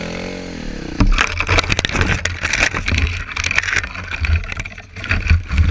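Branches scrape and snap against a dirt bike.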